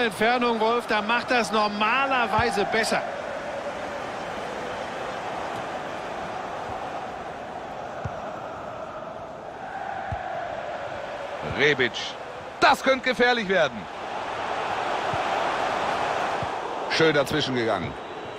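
A large crowd roars and murmurs steadily in a stadium.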